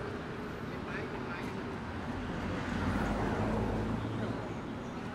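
A car engine rumbles as it drives slowly past nearby.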